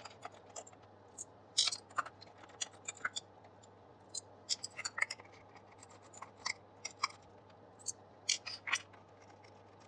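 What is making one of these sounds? A screwdriver clicks and scrapes against plastic screws.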